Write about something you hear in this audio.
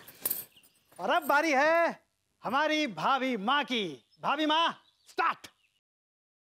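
A man speaks loudly in a sing-song, theatrical voice.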